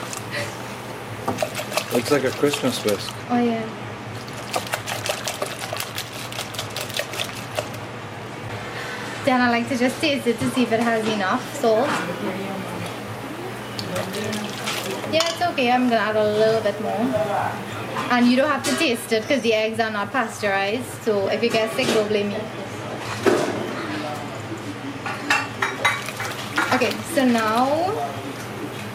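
A whisk clatters quickly against a metal bowl, beating a wet mixture.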